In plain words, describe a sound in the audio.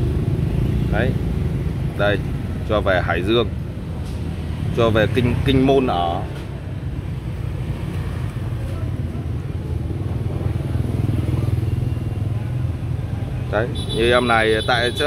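A man talks casually nearby, in short bursts.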